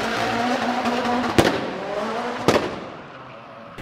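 A rally car engine revs loudly.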